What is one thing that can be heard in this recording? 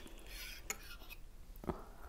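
A spoon scrapes through thick cream in a glass bowl.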